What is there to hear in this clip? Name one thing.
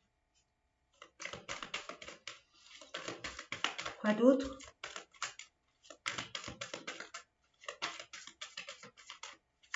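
Playing cards are shuffled with quick, crisp flicks.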